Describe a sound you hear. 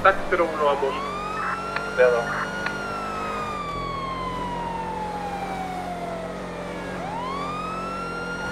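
A car engine revs high, shifting gears as it speeds along a road.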